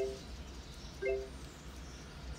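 A touchscreen beeps once when tapped.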